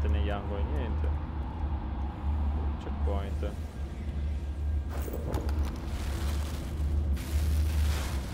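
Heavy armoured footsteps clank on a stone floor.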